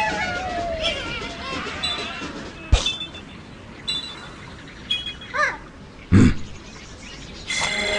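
Game sound effects chime and pop as the score counts up.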